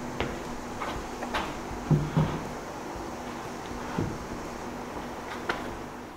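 Wooden boards knock lightly.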